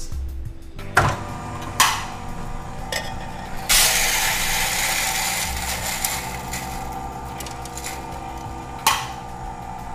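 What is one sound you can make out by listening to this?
A metal cup knocks against a machine.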